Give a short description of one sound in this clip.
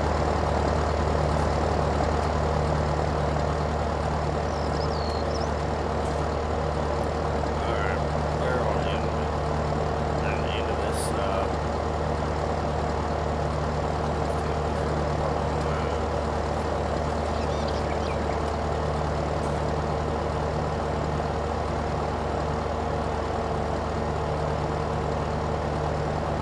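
A mower whirs as it cuts grass.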